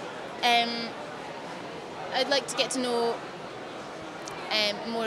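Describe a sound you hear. A young woman speaks calmly and hesitantly into a close microphone.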